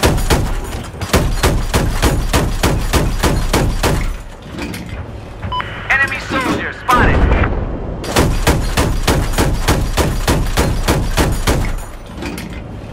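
A machine gun fires rapid bursts.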